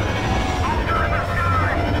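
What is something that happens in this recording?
A laser cannon fires in short zaps.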